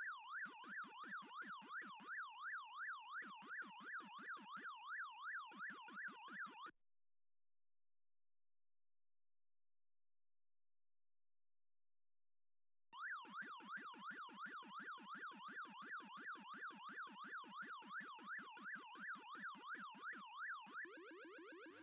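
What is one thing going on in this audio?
An arcade game siren warbles steadily up and down.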